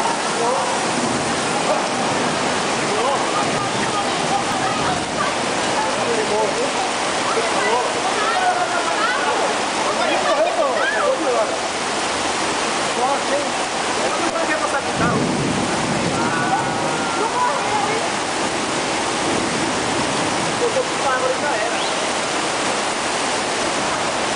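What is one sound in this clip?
Cars splash and surge through deep flood water.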